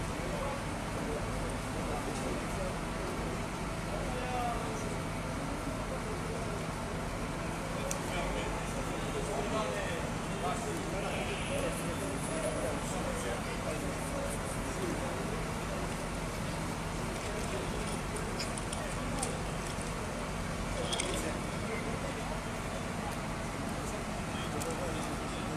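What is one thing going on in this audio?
A fire engine's engine idles with a steady low hum.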